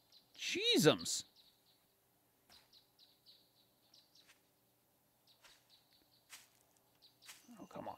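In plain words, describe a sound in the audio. Footsteps tread softly over grass and rock.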